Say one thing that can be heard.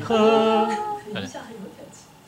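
A woman speaks briefly into a microphone, close by.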